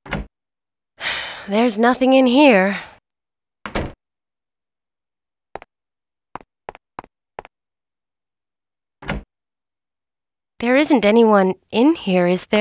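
A young woman speaks quietly to herself.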